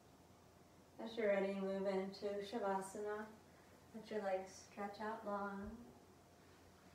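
A woman speaks calmly and clearly close to a microphone.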